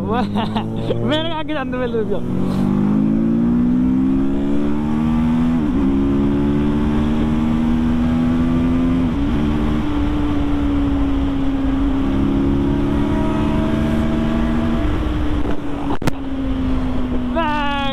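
A motorcycle engine revs hard and roars as it speeds up through the gears.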